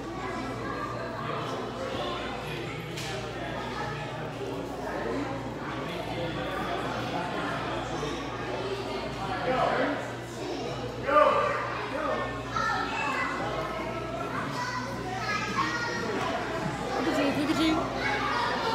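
Many people talk at once in a large echoing hall.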